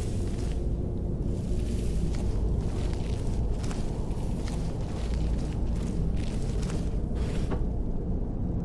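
Footsteps walk across a stone floor.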